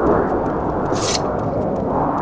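A weapon is drawn with a short metallic swish.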